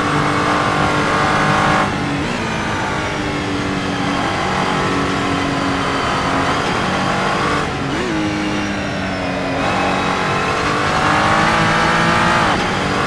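A racing car engine roars, its pitch rising and dropping as gears shift.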